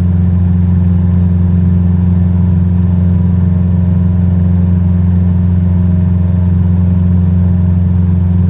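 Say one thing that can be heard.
A small plane's propeller engine drones steadily and loudly from inside the cockpit.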